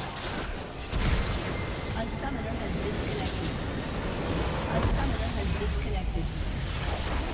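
A deep booming blast sounds as a large structure explodes.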